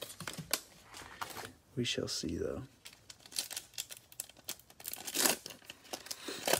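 A foil wrapper crinkles in gloved hands.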